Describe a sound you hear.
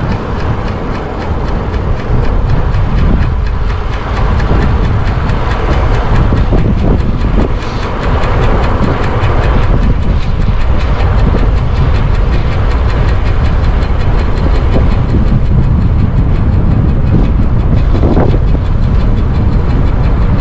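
Strong wind roars and buffets against a microphone.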